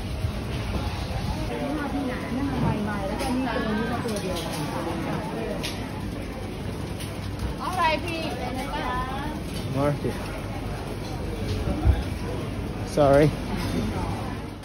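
A busy crowd chatters nearby.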